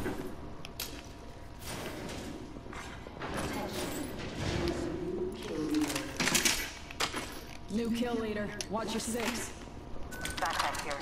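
Short clicks and clatters sound as items are picked up.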